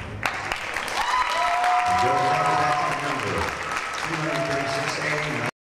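An audience claps in a large hall.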